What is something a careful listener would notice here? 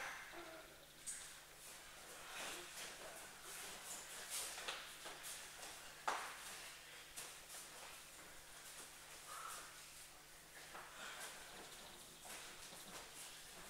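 Bare feet shuffle and thump on a padded mat.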